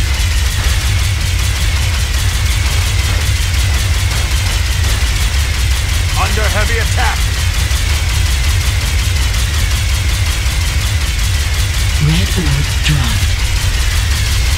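An energy beam weapon hums and crackles steadily.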